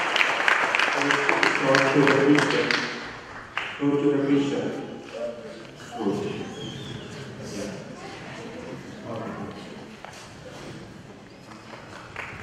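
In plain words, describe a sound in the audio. A man speaks calmly through a microphone and loudspeaker in an echoing hall.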